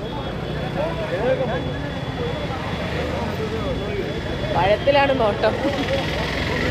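Several men talk among themselves outdoors.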